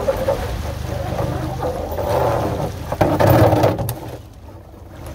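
Water splashes and rushes past a boat's hull.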